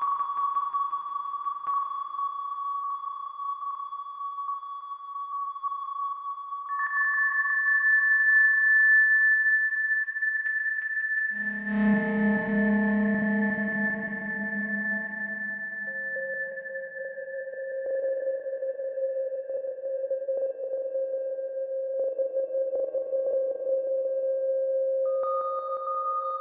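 A synthesizer plays shifting electronic tones.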